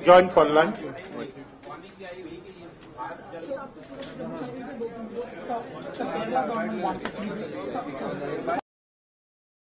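A crowd of men talk and shout over one another.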